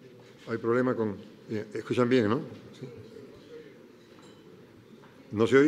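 A man speaks into a microphone over loudspeakers in a large hall, in short phrases with pauses.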